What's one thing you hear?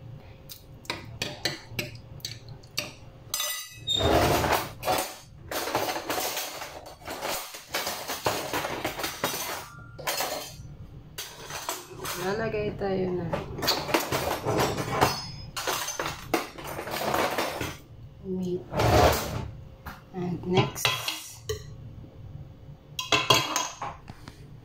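A metal ladle taps and scrapes against a glass dish.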